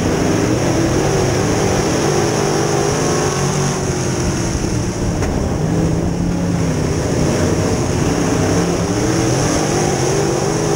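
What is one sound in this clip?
A race car engine roars loudly up close, revving up and down.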